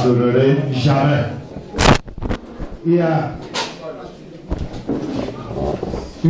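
A man speaks with animation into a microphone, heard through a loudspeaker in an echoing room.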